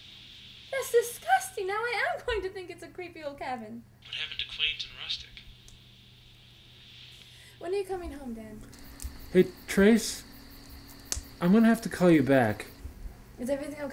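A young woman talks into a phone in a casual, animated way.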